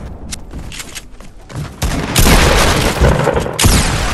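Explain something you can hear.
Wooden building pieces snap into place with hollow knocks.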